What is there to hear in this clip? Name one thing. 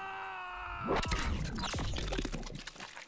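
Flesh bursts with a wet, squelching splatter.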